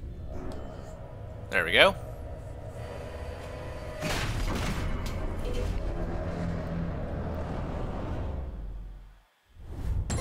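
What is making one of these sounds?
A deep spaceship engine rumbles steadily.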